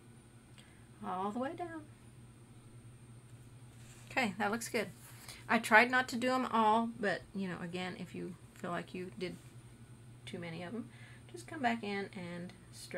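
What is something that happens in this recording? A woman talks calmly into a close microphone.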